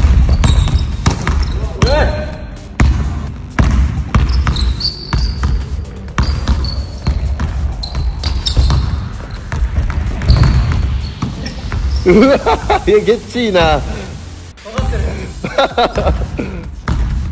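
A basketball bounces hard on a wooden floor, echoing.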